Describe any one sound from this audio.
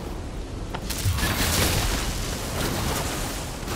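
A bright blast bursts with a loud boom.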